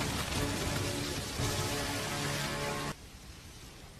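A loud blast roars and rumbles.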